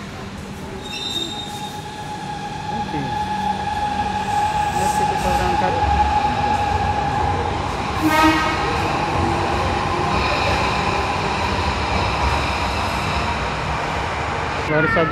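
An electric train pulls away from a station platform with a rising whine.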